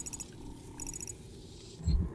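Short electronic blips chirp from a game menu.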